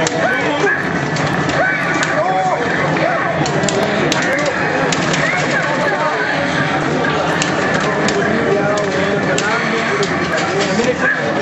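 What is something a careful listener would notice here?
Punches and kicks from a video game thud and crack through a loudspeaker.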